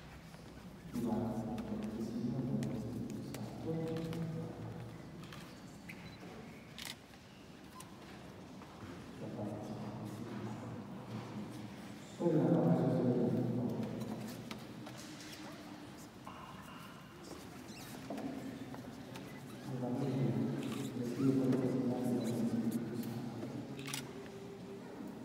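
A group of people sing together in a large echoing hall.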